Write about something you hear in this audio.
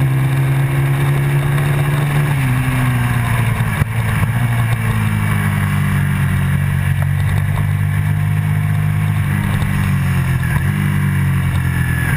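Wind buffets loudly against the riding motorcycle.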